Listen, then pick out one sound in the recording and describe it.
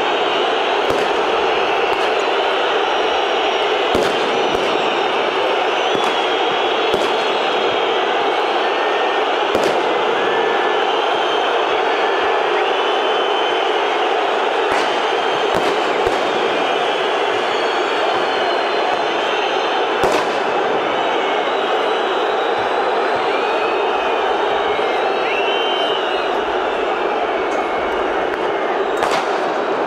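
A large stadium crowd chants and roars steadily outdoors.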